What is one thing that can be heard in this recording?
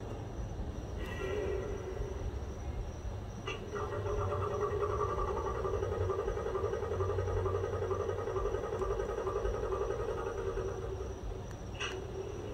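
A model locomotive hums steadily close by.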